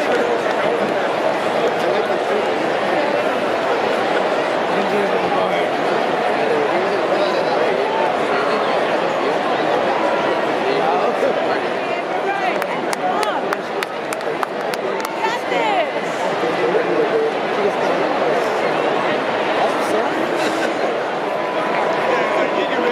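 Young men laugh and chat nearby.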